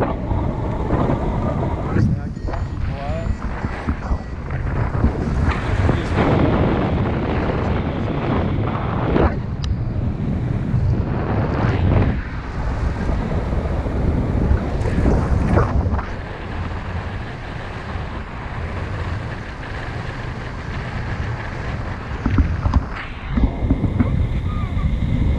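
Wind buffets the microphone loudly and steadily, high up outdoors.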